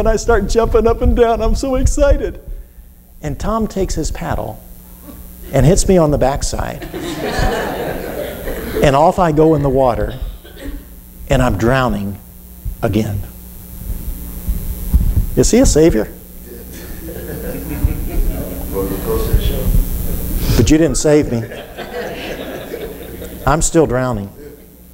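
An elderly man speaks with animation through a microphone in a large, echoing hall.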